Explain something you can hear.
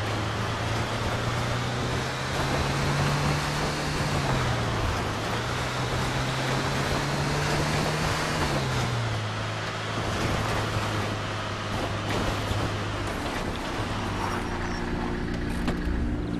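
Tyres crunch over a gravel dirt track.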